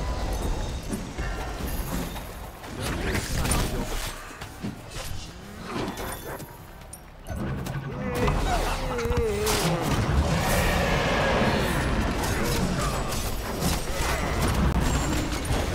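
Magic blasts and impacts crackle and boom in a fast fight.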